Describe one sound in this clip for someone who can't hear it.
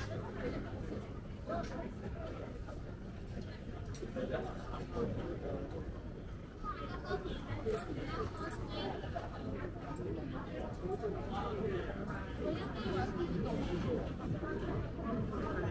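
A crowd of people chatters all around outdoors.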